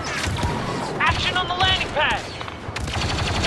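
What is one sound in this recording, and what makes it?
A laser blaster fires a quick burst of sharp, whining zaps.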